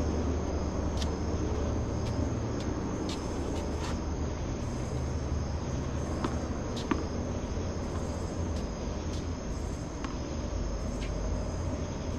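Tennis balls are struck with rackets, popping sharply at intervals.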